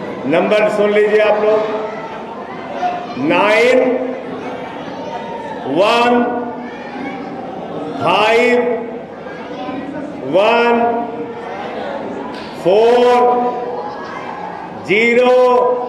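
A middle-aged man speaks forcefully into a microphone, his voice loud through a loudspeaker in an echoing room.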